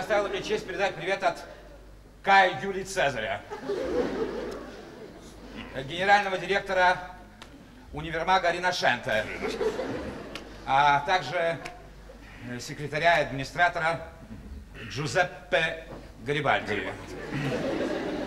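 A man speaks with animation into a microphone in a large hall.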